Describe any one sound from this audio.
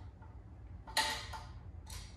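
A metal handlebar post knocks as it is adjusted.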